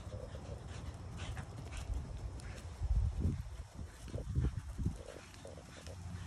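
A dog runs across grass with thudding paws.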